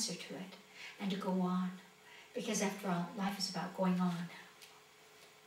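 An older woman speaks with animation close by.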